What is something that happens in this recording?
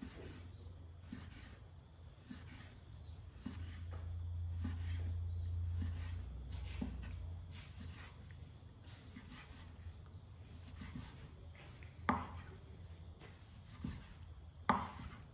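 A knife taps steadily on a wooden chopping board, slicing onion.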